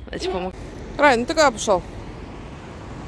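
A small dog yelps and whines nearby.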